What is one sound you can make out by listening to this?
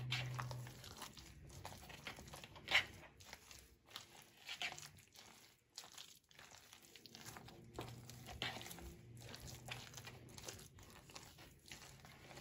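Hands squish and mix a thick, wet food mixture.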